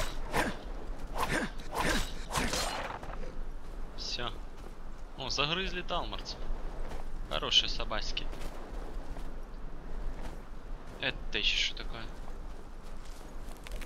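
Footsteps crunch on sand and gravel.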